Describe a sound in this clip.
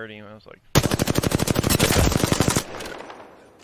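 Rapid gunfire rattles in a fast burst.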